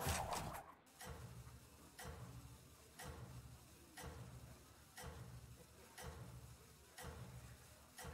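A game countdown timer ticks loudly once every second.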